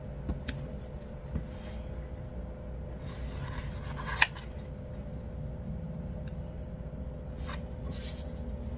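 Paper rustles and crinkles as a sticker sheet is handled.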